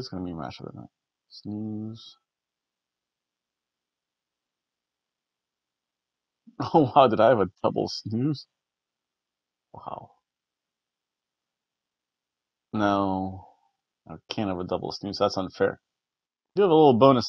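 A middle-aged man reads aloud close to a microphone, pausing between phrases.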